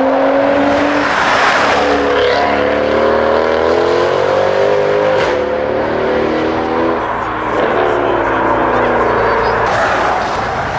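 A powerful car engine roars and revs as the car accelerates away.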